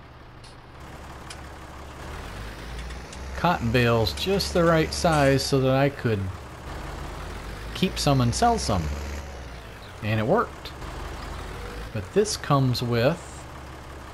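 A tractor engine rumbles steadily at idle.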